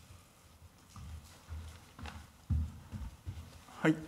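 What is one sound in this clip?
Footsteps thud softly across a large quiet room.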